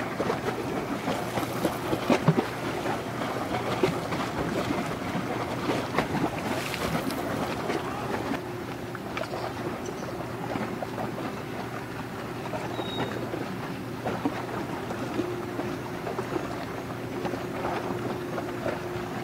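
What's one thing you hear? Water rushes and splashes against a large ship's bow.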